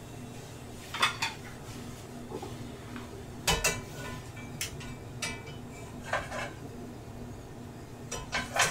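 Metal tongs clink and scrape against a frying pan.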